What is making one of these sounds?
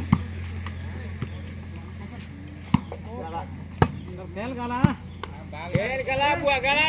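A ball is struck with sharp thuds.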